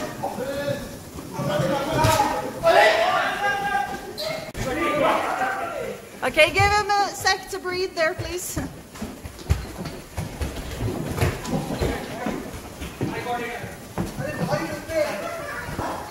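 Young men shout and laugh excitedly close by, echoing in a large hall.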